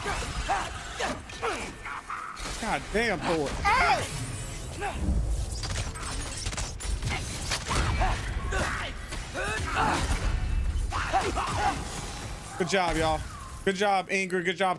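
Blows land with heavy thuds and crashes in a fight.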